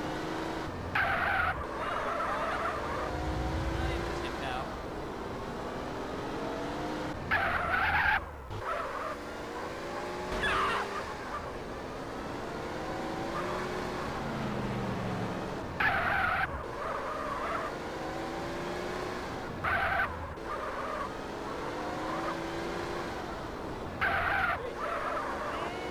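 Car tyres screech in short bursts during sharp turns.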